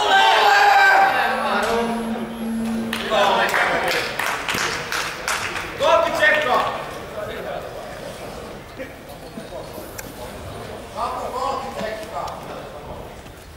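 Spectators shout encouragement in a large echoing hall.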